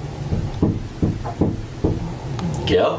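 A young man knocks on a wooden door.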